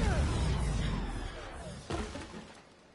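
Sparks crackle and burst loudly.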